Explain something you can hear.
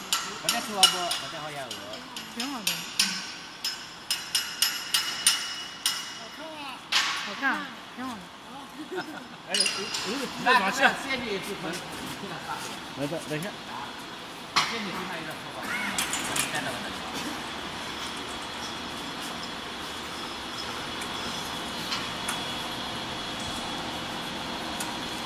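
A factory machine hums and clatters steadily.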